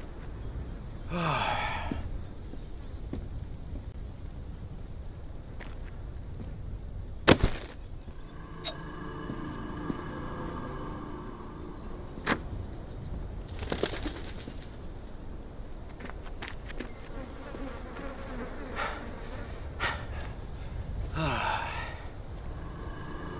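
Footsteps walk on a hard path.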